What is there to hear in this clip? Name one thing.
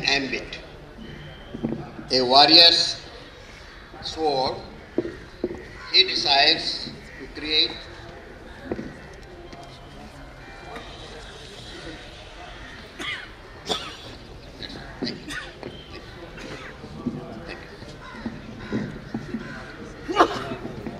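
An elderly man reads aloud into a microphone, slowly and with feeling.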